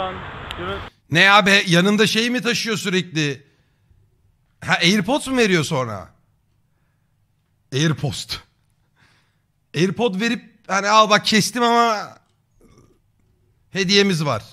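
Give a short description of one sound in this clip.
A young man talks close to a microphone with animation, in short bursts.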